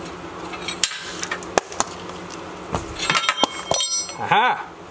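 Metal tools clatter and knock.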